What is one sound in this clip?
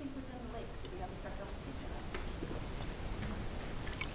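A middle-aged man drinks from a bottle.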